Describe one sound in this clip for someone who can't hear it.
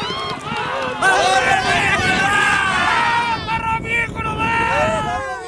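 A group of men cheer and shout excitedly outdoors.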